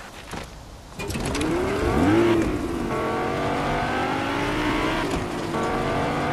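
A sports car engine revs up and roars as the car speeds along.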